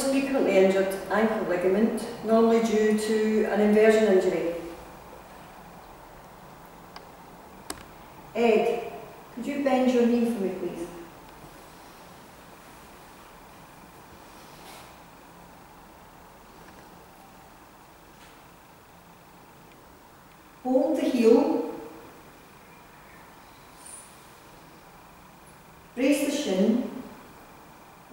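A woman speaks calmly nearby.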